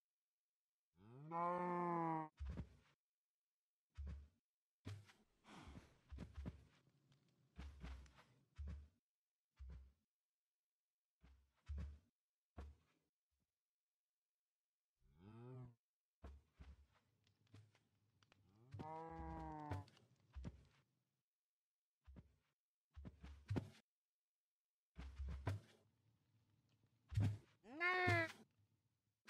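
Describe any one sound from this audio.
Cows moo loudly, a few times.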